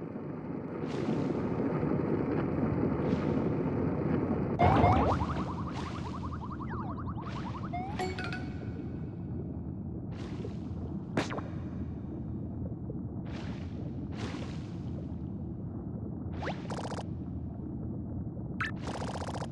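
Short whooshing sound effects play again and again.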